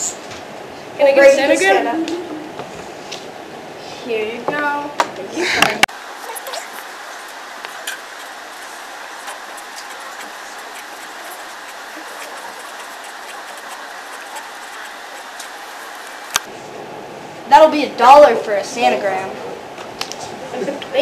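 Young teenage boys talk close by.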